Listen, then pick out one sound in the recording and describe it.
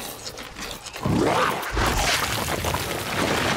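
A game character bursts out of the ground with a loud crumbling whoosh.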